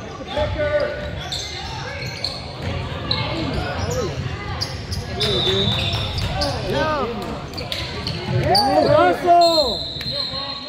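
Spectators chatter in an echoing gym.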